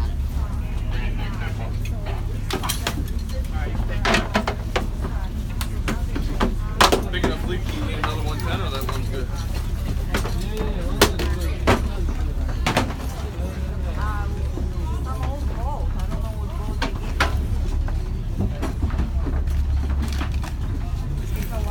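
Many people talk in a murmur around the room.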